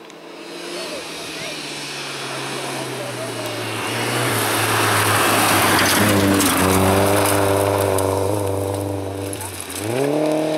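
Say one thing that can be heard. A rally car engine roars loudly as the car speeds closer and passes by.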